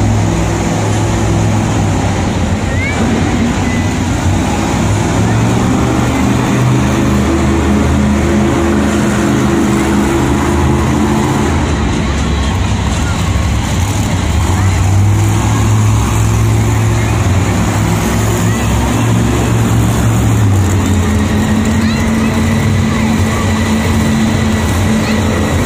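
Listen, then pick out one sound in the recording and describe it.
Monster truck engines roar and rev loudly in a large echoing arena.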